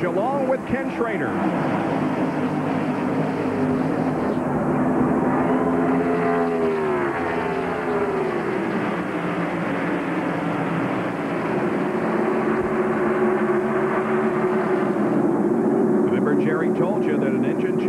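Race car engines roar loudly as a pack of cars speeds past.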